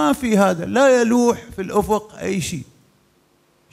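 An older man speaks with animation into a microphone.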